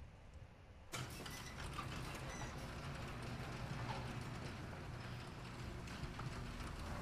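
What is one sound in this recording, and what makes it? Wind howls steadily outdoors.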